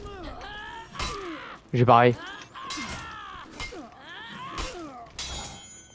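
Swords clash with sharp metallic strikes.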